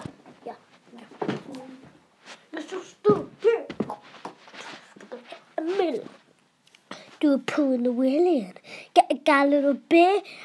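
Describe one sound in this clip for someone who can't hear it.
A young boy talks and sings loudly, close up.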